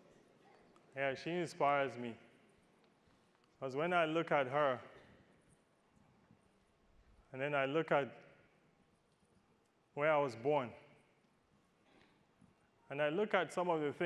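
A man speaks calmly into a clip-on microphone in short phrases with pauses.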